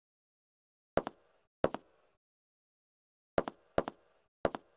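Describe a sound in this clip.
Boots step on a metal grate floor.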